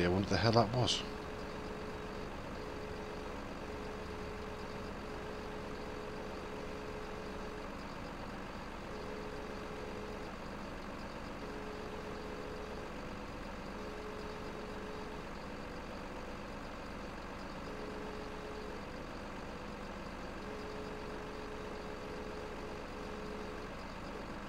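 A hydraulic crane arm whines as it moves.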